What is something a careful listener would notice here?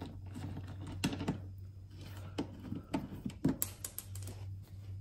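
Fingers click and snap a plastic fastener under a car's wheel arch.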